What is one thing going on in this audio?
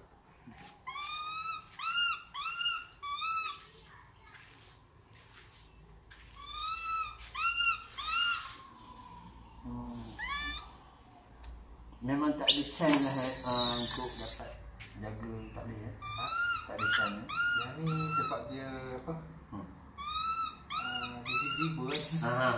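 A small animal chirps repeatedly.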